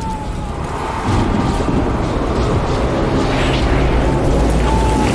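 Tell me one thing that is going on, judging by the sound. A strong storm wind roars loudly.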